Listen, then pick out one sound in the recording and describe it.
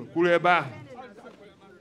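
A man speaks loudly and briefly, close by.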